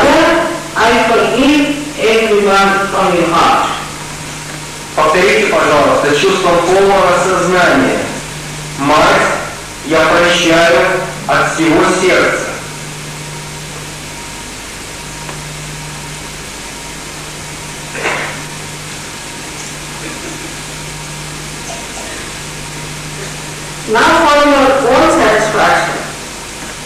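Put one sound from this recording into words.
A woman sings into a microphone, heard through loudspeakers, with long pauses between phrases.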